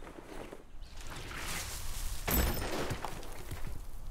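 An axe chops into wood with heavy thuds.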